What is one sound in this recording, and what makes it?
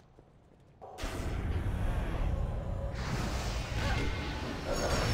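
Fire roars loudly.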